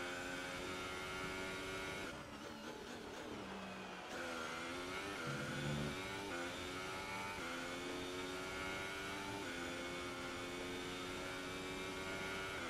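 A racing car engine screams at high revs, dropping in pitch while braking into a corner and climbing again through the gears.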